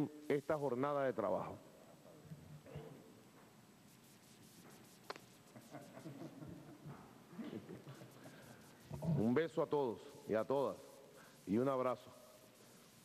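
A man speaks into a microphone, calmly and with pauses.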